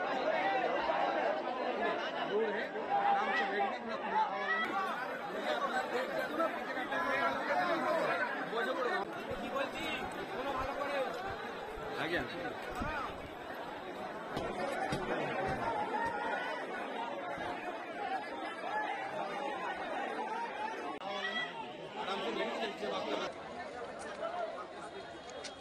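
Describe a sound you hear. A large crowd of men shouts and calls out excitedly outdoors.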